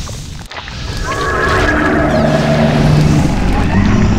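A large beast lets out a long, deep roar.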